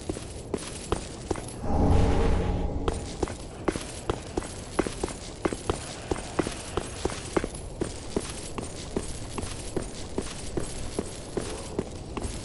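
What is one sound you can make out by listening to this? Armoured footsteps run quickly and steadily over stone.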